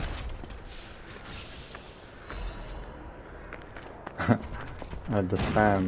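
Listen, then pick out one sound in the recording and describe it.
A sword slashes and strikes with sharp metallic hits.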